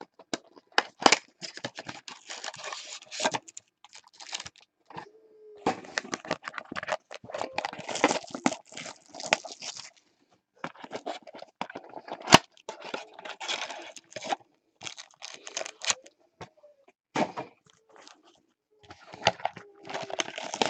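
Card packs tap and knock on a table.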